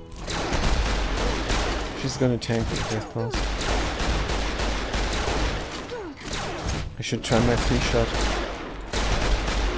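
Gunshots fire again and again in quick bursts.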